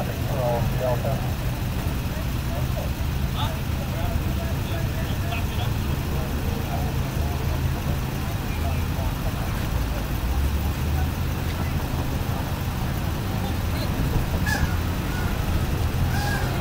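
Traffic rumbles steadily on a busy street outdoors.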